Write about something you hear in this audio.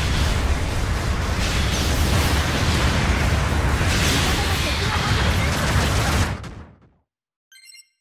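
Heavy gunfire and explosions roar without a break, then quickly fade out.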